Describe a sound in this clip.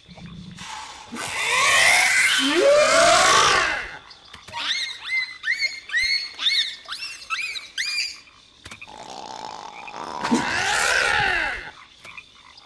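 A large creature roars loudly.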